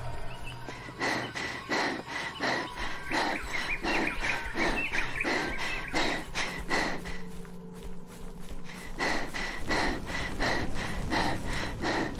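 Footsteps tap quickly on pavement.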